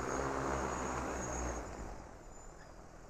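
A drone's motors hum nearby and wind down.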